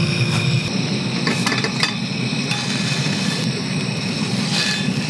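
Fat sizzles softly on a hot pan.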